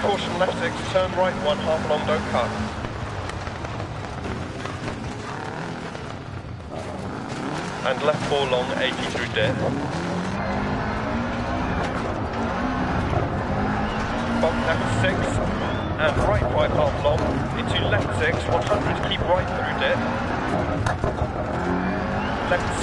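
Tyres crunch and skid over loose gravel.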